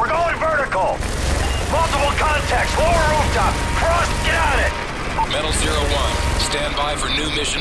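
A heavy machine gun fires rapid bursts.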